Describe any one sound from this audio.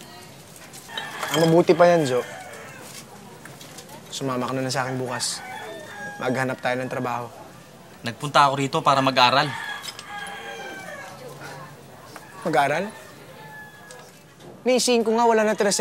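A second young man answers in a calm voice.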